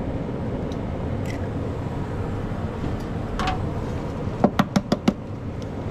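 Water bubbles gently in a pan.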